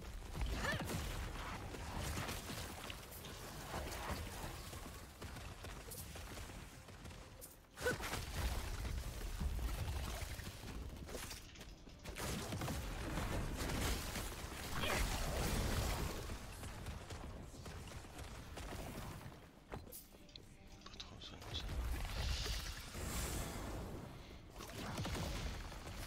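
Game combat effects whoosh and crash.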